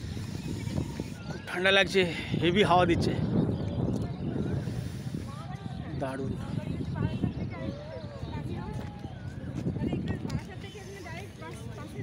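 A man talks close to a clip-on microphone, outdoors in light wind.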